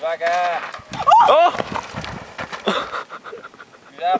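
A bicycle crashes and skids across loose dirt.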